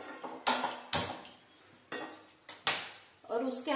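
A metal pan clanks on a stove.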